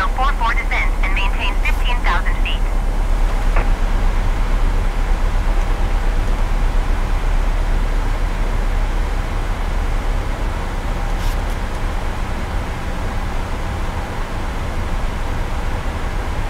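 A jet engine drones steadily with a low rumble.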